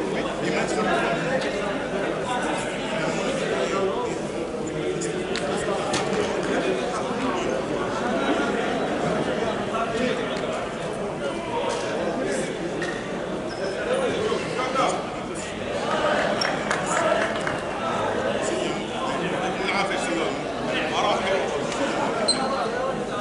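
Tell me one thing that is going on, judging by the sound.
Adults talk at a distance in a large echoing hall.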